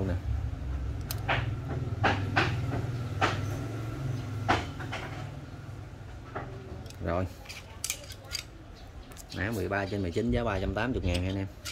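Metal pliers clink and click as they are handled.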